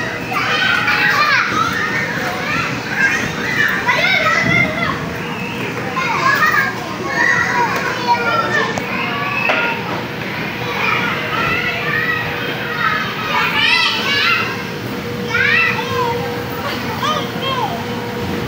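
Feet thump on an inflatable bouncy surface.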